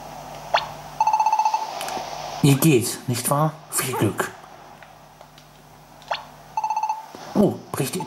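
Short electronic chimes beep in quick bursts.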